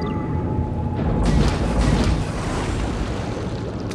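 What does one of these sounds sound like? Torpedoes launch with a rushing whoosh.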